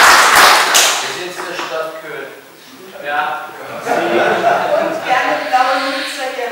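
An elderly man speaks calmly to a crowd in an echoing hall.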